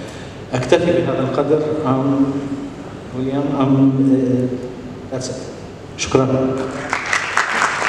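An older man speaks steadily through a microphone in a large echoing hall.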